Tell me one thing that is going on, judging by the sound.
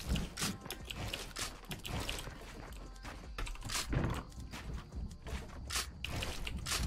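Wooden planks clatter and thud into place in quick bursts.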